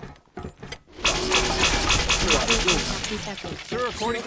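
A laser gun fires a rapid, buzzing stream of shots.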